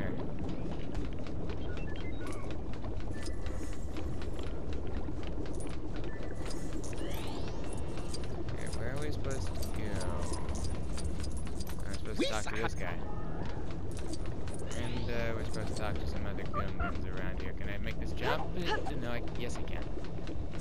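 Quick light footsteps patter on a hard floor.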